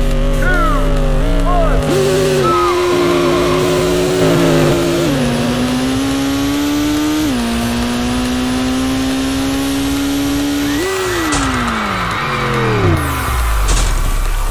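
A racing car engine revs hard and climbs through the gears, then winds down.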